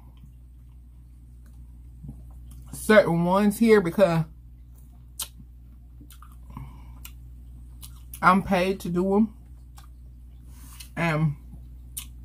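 A woman chews food close to a microphone with soft smacking sounds.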